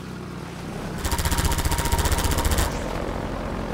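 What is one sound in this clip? A gun fires in a rapid burst.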